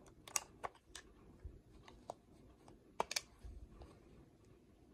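Hands handle a small plastic device, with soft rustling and tapping.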